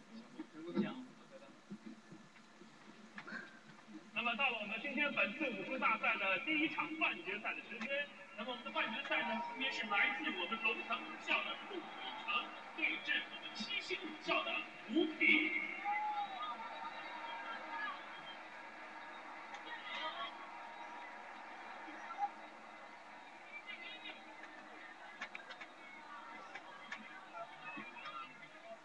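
A small television loudspeaker plays a broadcast.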